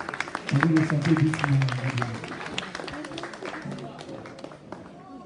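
People clap and cheer in a room.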